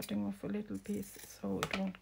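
Scissors snip through thick paper.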